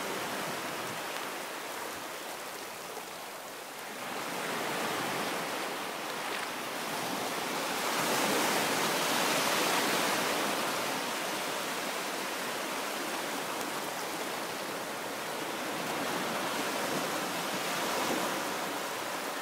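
Small waves break and wash up close by, surging and fading.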